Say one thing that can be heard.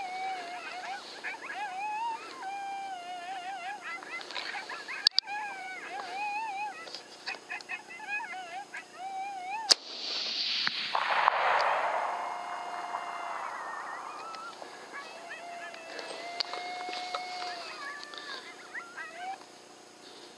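A small animal squeaks and chirps close by.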